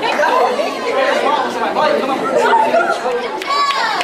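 A young girl laughs with a young woman.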